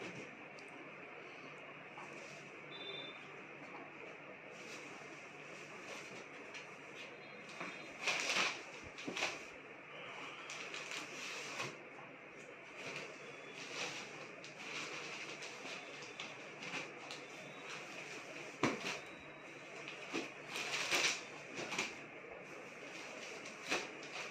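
Cloth rustles and swishes as fabric is handled and laid down.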